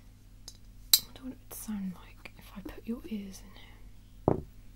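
A young woman whispers softly close to the microphone.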